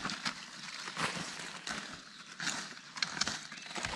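Plants snap and tear as a person pulls them from the ground.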